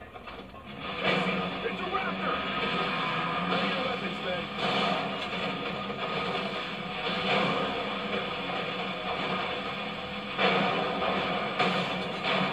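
Rapid gunfire bursts out loudly, close by.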